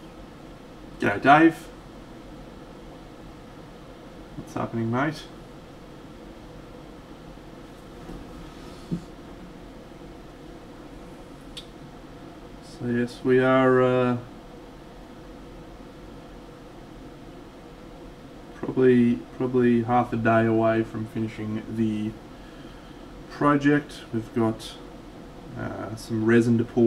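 A man talks calmly and casually into a close microphone, in short bursts with pauses.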